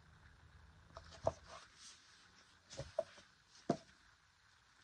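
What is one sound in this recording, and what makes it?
A paperback book's pages rustle and tap in a man's hands.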